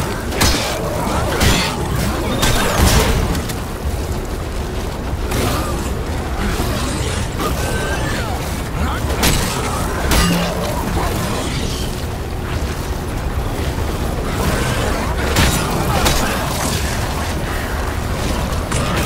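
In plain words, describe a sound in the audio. Monsters screech and growl.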